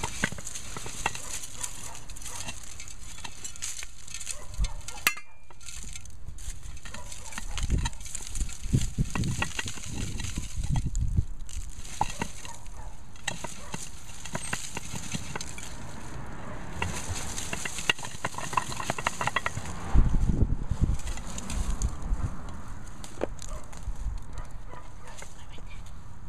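Dry leaves and stems rustle as plants are handled.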